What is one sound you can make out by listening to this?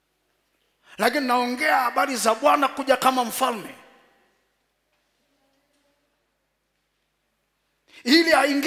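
A man preaches loudly and with animation into a microphone in a large echoing hall.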